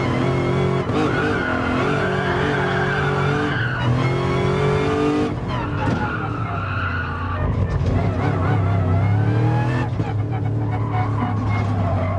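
A V8 race car engine revs hard at full throttle and shifts through the gears.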